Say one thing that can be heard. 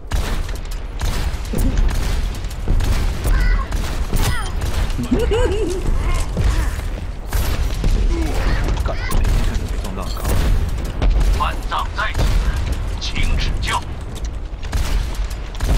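A rapid-fire gun shoots in loud bursts.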